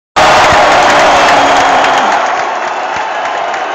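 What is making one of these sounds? Nearby fans cheer and shout close by.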